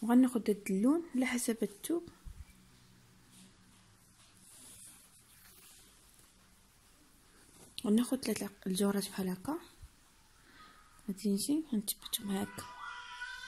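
A needle and thread pull softly through cloth.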